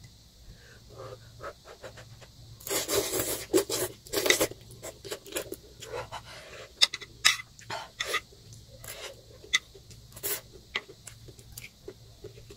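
A young woman slurps noodles loudly, close by.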